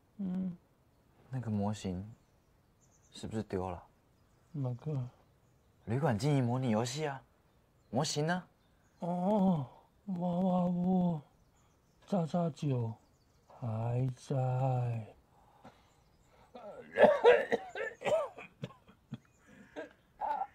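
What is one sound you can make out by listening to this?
An elderly man answers in a weak, tired voice.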